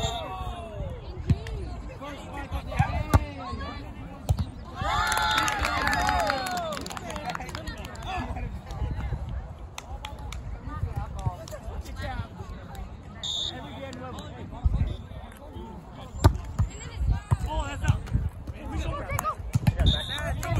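Young people shout and call out to each other outdoors.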